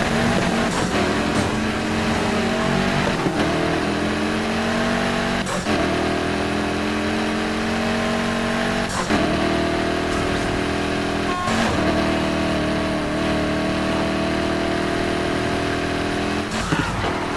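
A car engine revs up high, rising in pitch and dropping back with each gear change.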